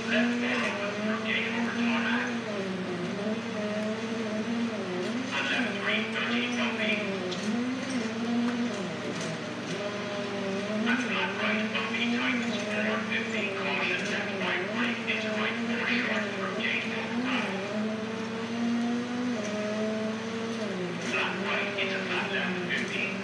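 A rally car engine roars, revving up and down as gears shift.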